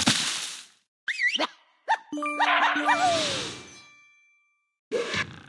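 Cheerful chiming tones ring out in quick succession.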